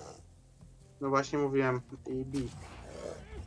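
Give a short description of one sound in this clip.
A bear growls loudly nearby.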